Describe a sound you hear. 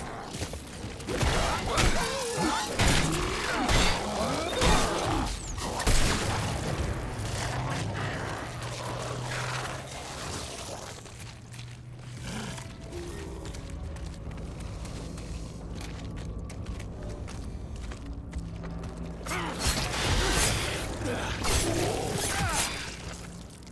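A creature's body bursts wetly with loud gory splatters.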